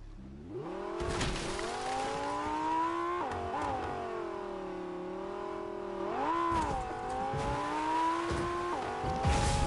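Tyres thump and skid over bumpy snow.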